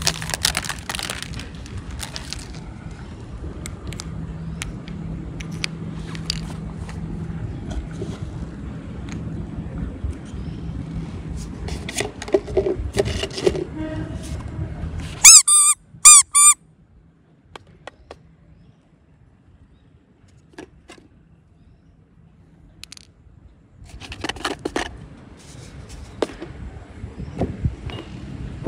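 Plastic toys tap and clatter on a stone pavement.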